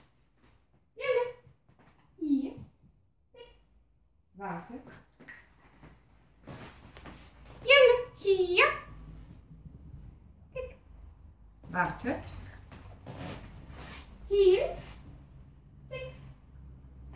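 A woman gives short, firm commands to a dog close by.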